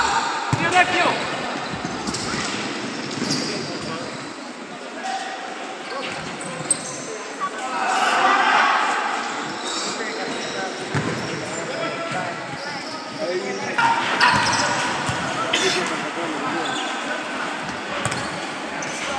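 A crowd of spectators cheers and shouts from the stands.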